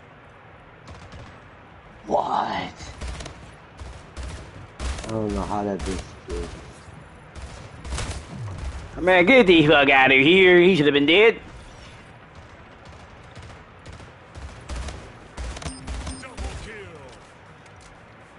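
Video game gunfire cracks in rapid bursts.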